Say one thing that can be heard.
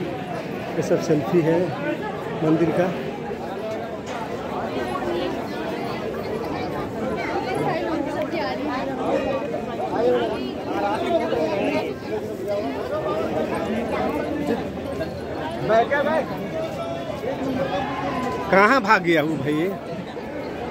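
A crowd of men and women chatter loudly all around, close by.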